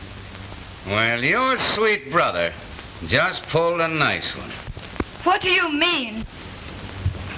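A man speaks tensely and urgently.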